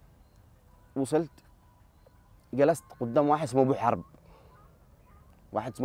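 A young man speaks calmly and close to the microphone, in short bursts.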